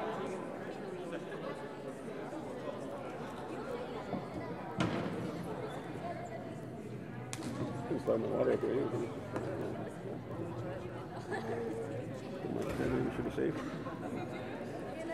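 A crowd of young people chatters in an echoing hall.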